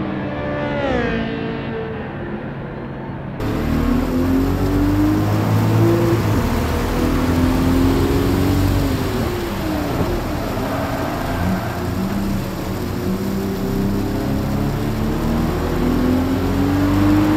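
A racing car engine revs and slows as gears change.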